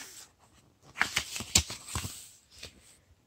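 A book's paper page rustles as it turns.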